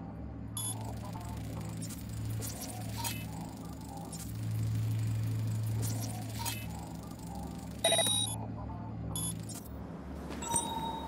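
A low electronic hum drones steadily, then stops.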